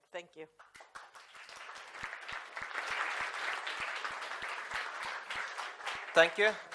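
An audience claps in a room.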